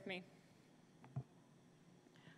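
A microphone thumps as it is handled.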